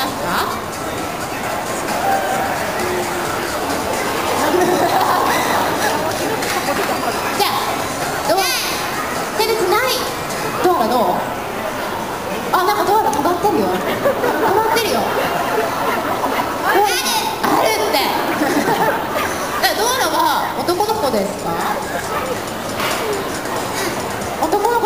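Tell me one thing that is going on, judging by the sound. A crowd chatters and cheers nearby in an echoing indoor hall.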